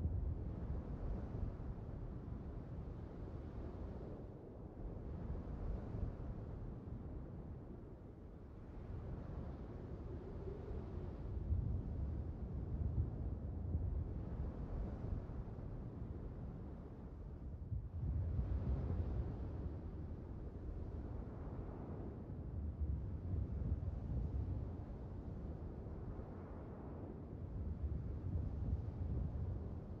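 Water rushes past a ship's bow.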